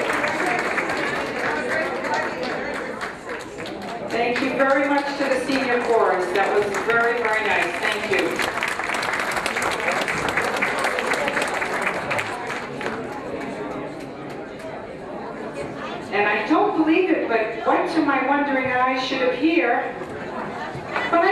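Many people chatter in a large room.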